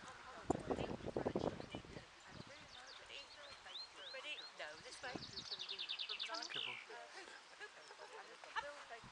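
An older woman talks encouragingly to a dog outdoors.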